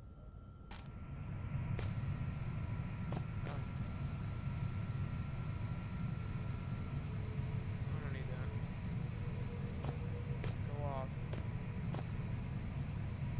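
An electrical machine hums steadily.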